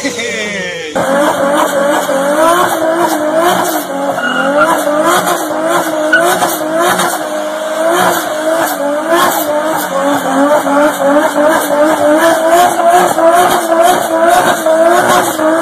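A car engine bounces rapidly up and down in pitch.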